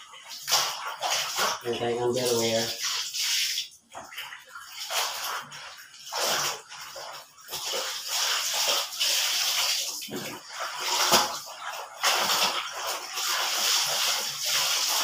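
Water splashes and sloshes in a basin as clothes are washed by hand.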